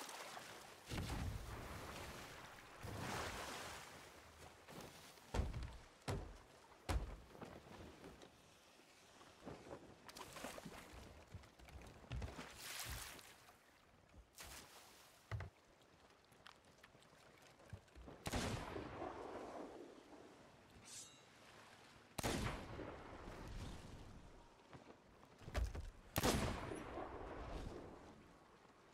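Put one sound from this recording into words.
Waves wash and splash against a wooden ship.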